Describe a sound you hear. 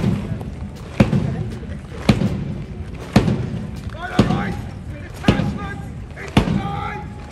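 Heavy boots stamp on gravel in unison, in a steady marching rhythm, outdoors.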